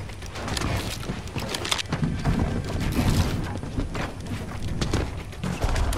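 Building pieces clack into place in quick succession.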